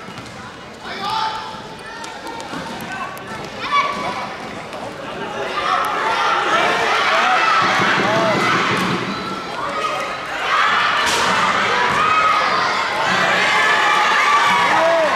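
Sneakers squeak sharply on a hard indoor floor.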